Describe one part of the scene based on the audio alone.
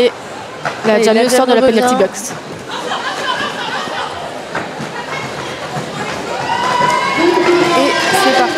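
Young women shout and call out to each other across the hall.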